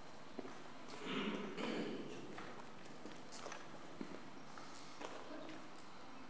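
A man talks at a distance in a large echoing hall.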